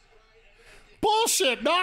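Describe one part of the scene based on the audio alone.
A man speaks loudly and close into a microphone.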